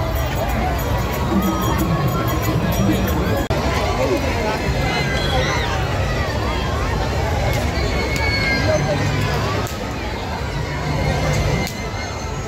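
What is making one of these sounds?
A large crowd chatters loudly all around outdoors.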